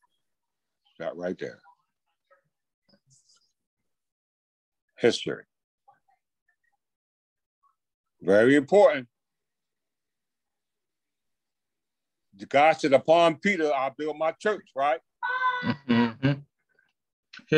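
A man speaks calmly in short phrases, heard through an online call.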